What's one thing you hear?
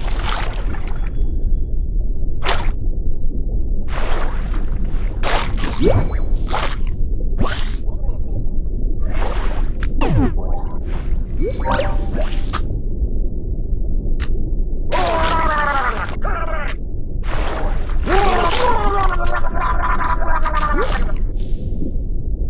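Short crunching bites sound again and again as a shark eats its prey.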